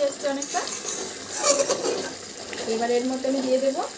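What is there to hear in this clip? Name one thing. A metal spatula scrapes and stirs in a metal pan.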